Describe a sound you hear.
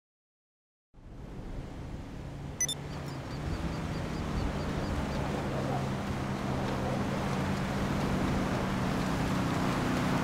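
Wind blows steadily outdoors in a snowstorm.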